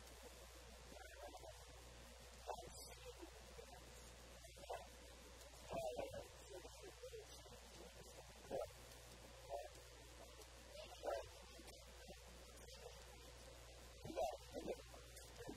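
A man speaks briefly in short phrases, pausing between them.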